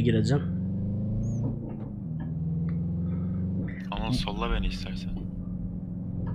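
A car engine hums steadily at high revs.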